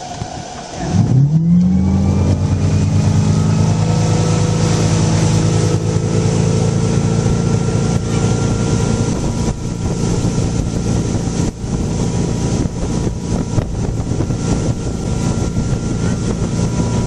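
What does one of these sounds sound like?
Water rushes and splashes against a speeding boat's hull.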